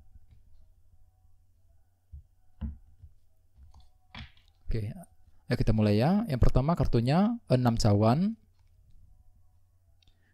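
Playing cards are laid down on a table with light taps.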